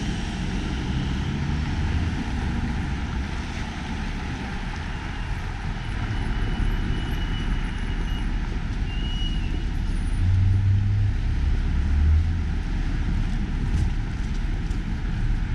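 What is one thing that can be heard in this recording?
Car engines hum and tyres roll past on a busy street.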